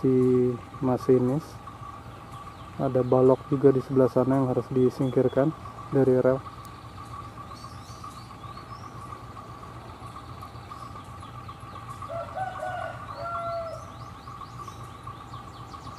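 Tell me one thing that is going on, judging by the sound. A diesel locomotive's engine rumbles steadily as it rolls slowly along.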